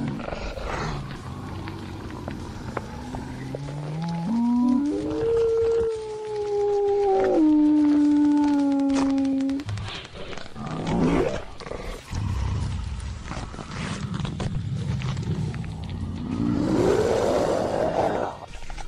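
A large beast growls and snarls roughly.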